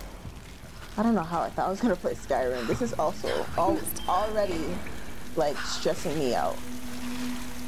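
A young woman speaks anxiously under her breath.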